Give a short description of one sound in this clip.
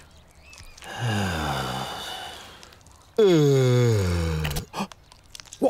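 A man yawns loudly with a long falling groan.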